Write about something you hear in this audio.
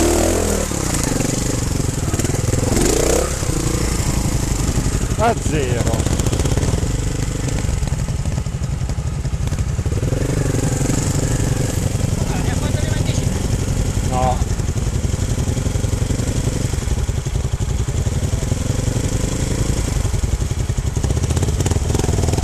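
A trials motorcycle engine idles and putters close by.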